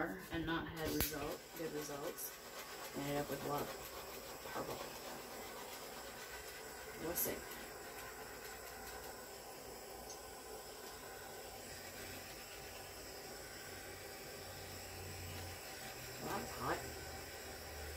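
A handheld torch hisses steadily.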